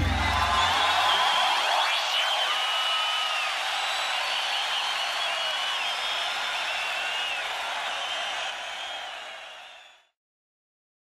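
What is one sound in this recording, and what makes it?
Music with a bright, warbling melody plays loudly and fades out quickly.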